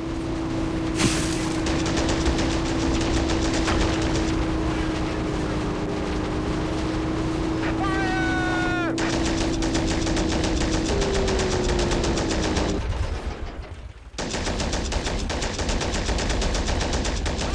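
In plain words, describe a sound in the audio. An armoured vehicle's engine rumbles as it drives.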